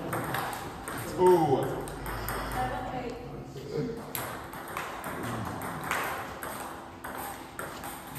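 Ping-pong balls click sharply on tables and bats in an echoing hall.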